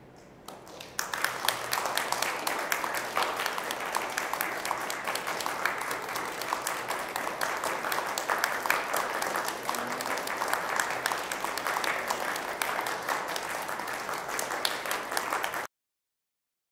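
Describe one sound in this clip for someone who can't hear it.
Hands clap in lively applause that goes on and then stops abruptly.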